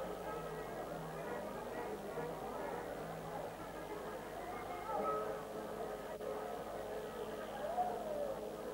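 A crowd of young people chatters and calls out in a noisy room.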